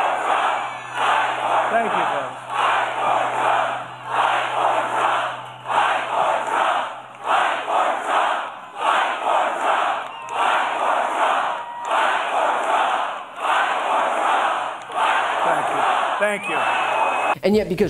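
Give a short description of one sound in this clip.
A large crowd chants in loud rhythmic bursts outdoors.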